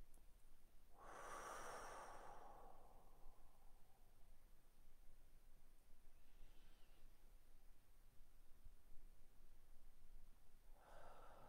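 A woman breathes out slowly and deeply close to a microphone.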